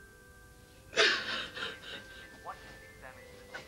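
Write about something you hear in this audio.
A woman sobs and cries.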